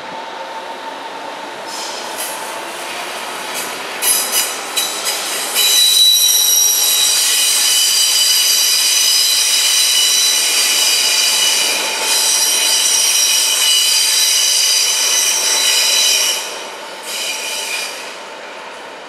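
A train rolls along the tracks and slows down.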